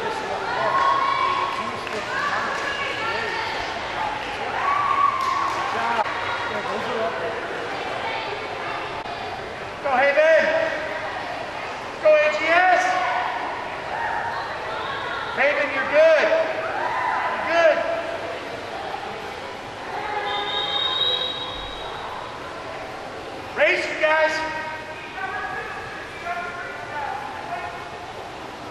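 A crowd of young people chatters and calls out in a large echoing hall.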